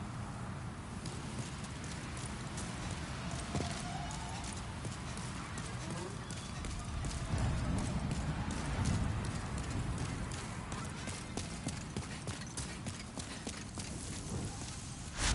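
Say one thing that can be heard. Armored footsteps clatter quickly on stone.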